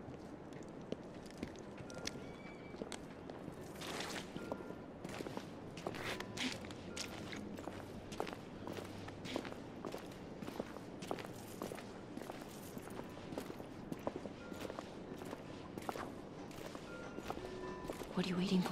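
Footsteps crunch on rough ground at a steady walking pace.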